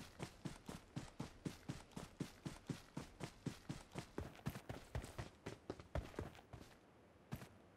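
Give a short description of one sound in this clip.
Footsteps thud quickly and evenly on grass and dirt.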